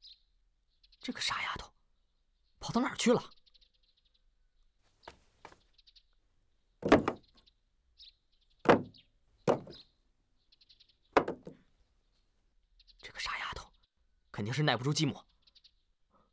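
A young man speaks in short, tense bursts nearby.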